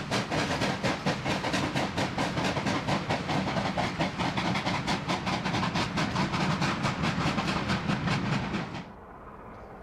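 Train carriages rumble along the rails.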